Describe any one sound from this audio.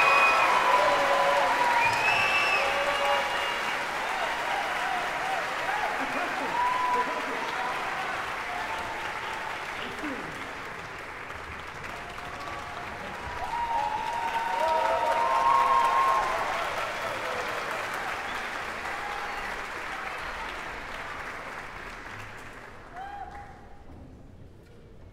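An orchestra plays in a large echoing hall, its music swelling and then fading.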